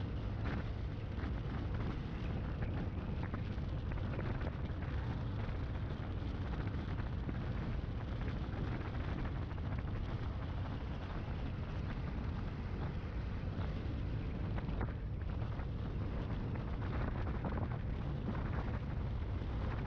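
Wind buffets loudly and steadily against a moving microphone.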